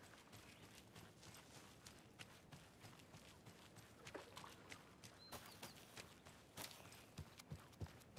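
Footsteps crunch on dry leaves and grass.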